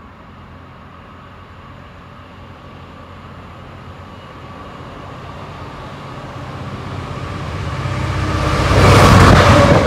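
A train rumbles closer and roars past close by.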